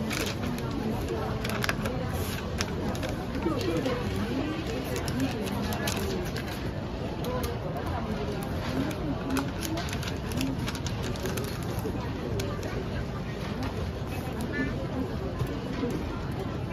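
Paper creases with sharp snaps as folds are pressed.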